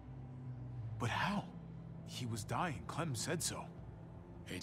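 A young man speaks with worry, close by.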